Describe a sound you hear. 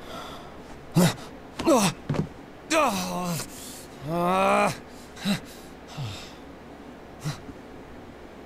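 A young man cries out in alarm, close by.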